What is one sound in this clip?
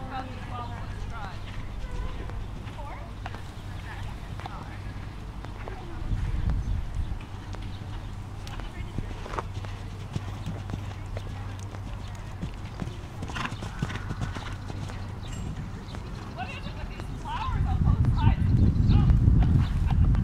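Horse hooves thud on soft sand at a canter.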